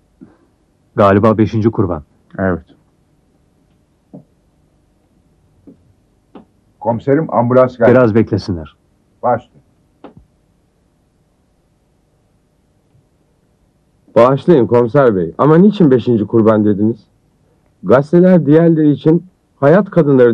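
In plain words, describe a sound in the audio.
Men speak in turn in low, serious voices.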